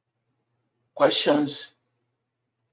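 An elderly man speaks calmly over an online call.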